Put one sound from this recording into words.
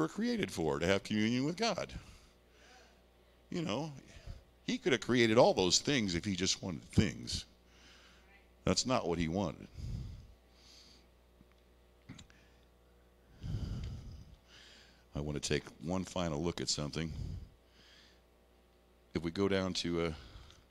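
A man speaks calmly through a microphone and loudspeakers, in a large echoing hall.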